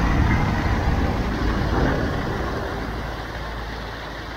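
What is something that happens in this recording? Water pours and splashes loudly close by.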